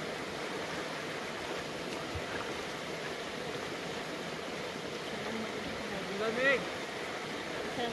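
A shallow stream flows and babbles steadily.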